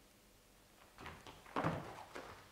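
Papers rustle as they are picked up.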